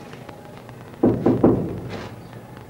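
A man speaks loudly in short bursts.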